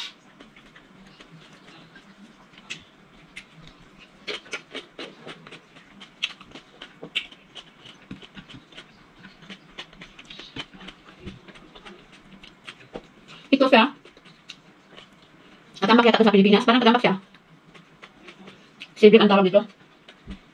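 A woman chews and smacks her lips close by.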